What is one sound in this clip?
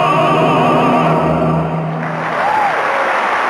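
Male tenors sing a final held note together through microphones.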